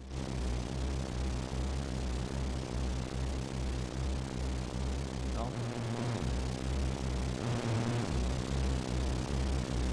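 Rhythmic music with a deep pulsing bass plays steadily.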